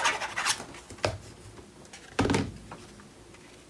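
Paper pats down onto a table with soft thumps.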